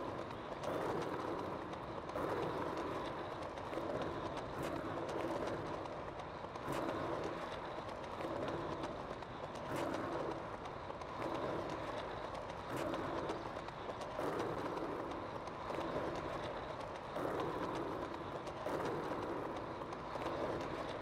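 A skater's foot pushes against the ground in a steady rhythm.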